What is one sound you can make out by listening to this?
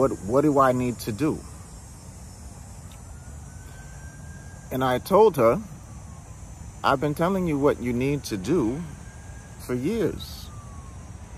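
A man speaks close up in short, expressive bursts with pauses between them.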